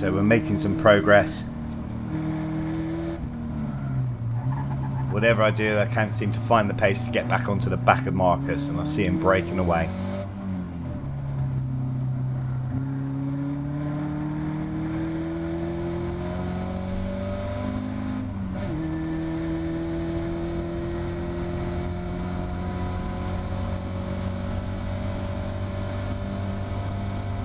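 Wind rushes past in an open car.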